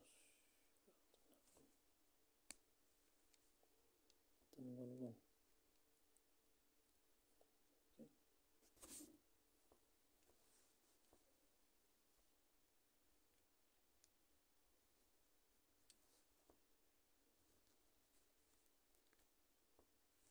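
Fabric rubs and rustles right against the microphone.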